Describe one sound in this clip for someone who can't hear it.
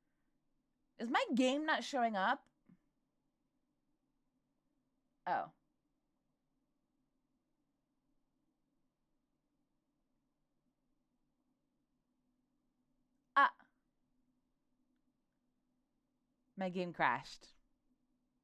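A young woman speaks in short, lively bursts close to a microphone.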